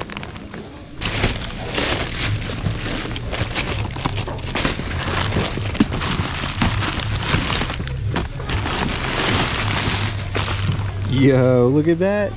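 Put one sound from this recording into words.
Plastic packaging rustles and crinkles as items are rummaged through.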